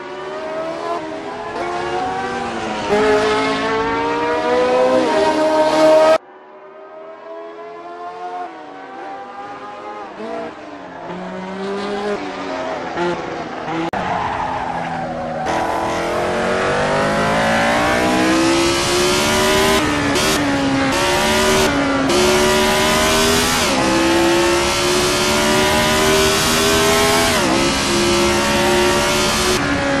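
A racing car engine roars loudly, rising in pitch and dropping as it changes gear.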